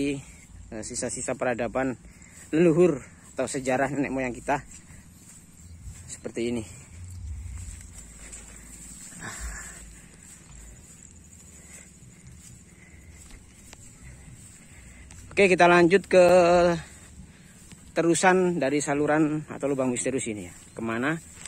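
Tall rice stalks rustle as a person walks through them.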